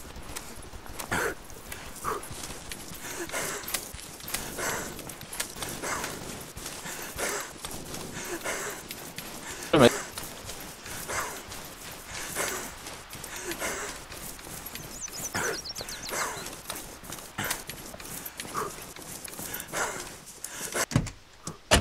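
Footsteps crunch steadily over dry ground and pavement.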